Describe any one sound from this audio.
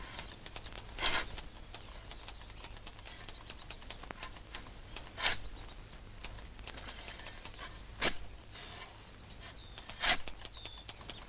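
A shovel strikes and digs into soil with dull thuds.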